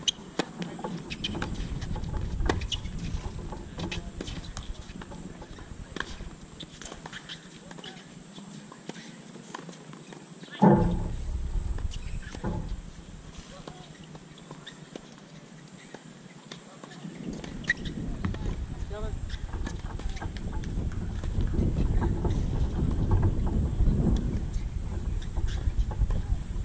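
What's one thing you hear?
A tennis ball is struck back and forth with sharp pops of rackets.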